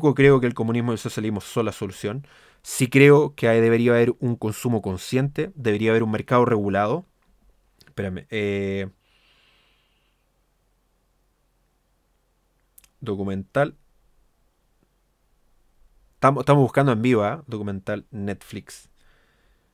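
A young man speaks with animation close to a microphone, pausing between phrases.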